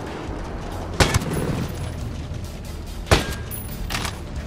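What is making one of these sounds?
A sniper rifle fires loud single shots that echo briefly.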